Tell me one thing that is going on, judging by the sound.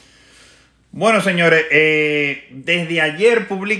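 A man speaks up close, loudly and with animation.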